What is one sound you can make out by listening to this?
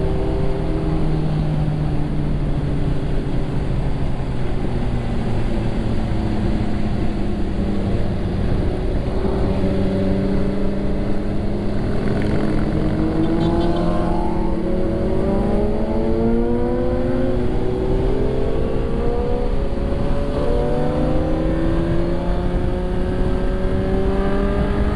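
A motorcycle engine roars steadily and revs up and down through its gears.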